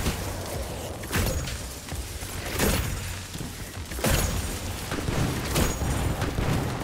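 Gunshots ring out in loud, repeated bursts.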